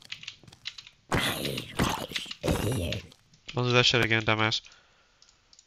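A zombie groans.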